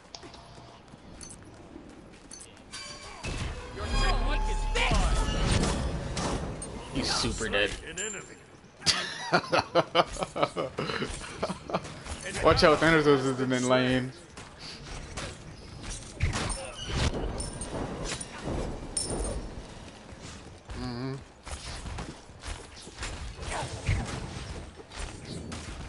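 Magic spells blast and whoosh in a game.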